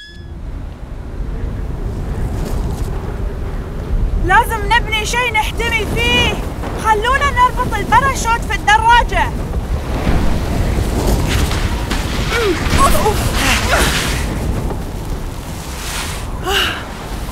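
Strong wind roars and gusts steadily.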